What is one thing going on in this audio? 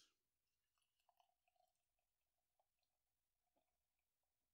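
Beer pours into a glass with a gentle fizz.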